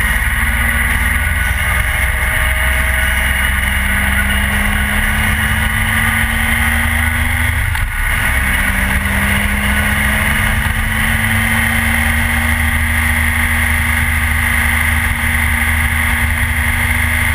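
A motorcycle engine hums steadily at speed, dipping briefly as the gears change.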